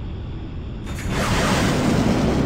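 Wind rushes loudly past a jet as it rolls into a steep turn.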